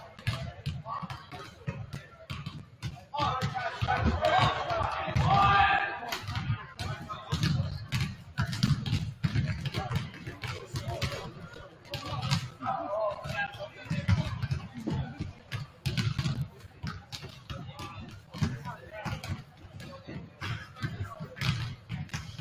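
Basketballs bounce on a hardwood floor, echoing in a large hall.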